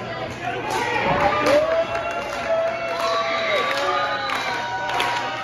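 A man cheers loudly nearby.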